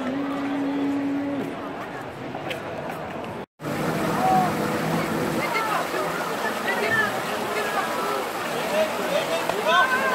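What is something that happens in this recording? A crowd murmurs outdoors.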